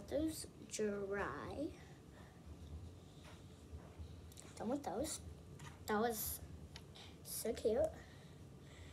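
A young girl talks softly and close by, in short bursts.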